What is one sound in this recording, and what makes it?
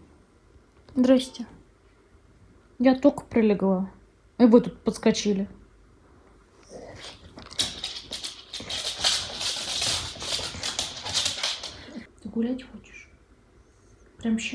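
Small dogs whine and yelp close by.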